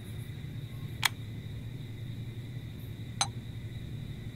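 Glass test tubes clink softly into place.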